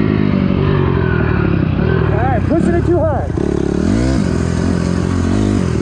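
A dirt bike engine revs loudly and roars up and down in pitch.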